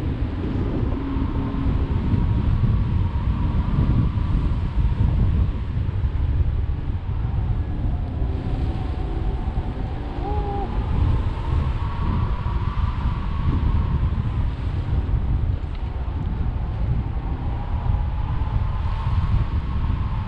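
Strong wind rushes and buffets steadily outdoors.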